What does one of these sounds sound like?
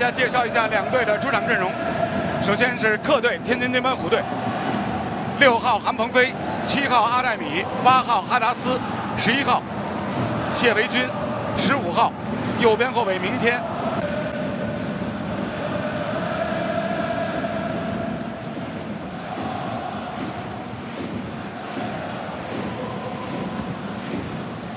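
A large stadium crowd chants and cheers in the open air.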